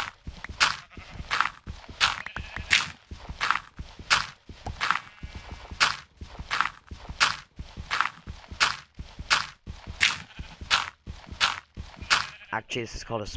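Blocks are dug out with quick, rhythmic crunching knocks.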